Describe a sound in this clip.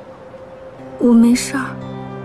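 A young woman answers quietly, close by.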